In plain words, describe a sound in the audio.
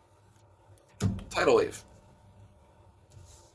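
Playing cards rustle and slide softly against each other.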